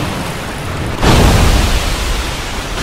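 A heavy blow lands with a crashing thud.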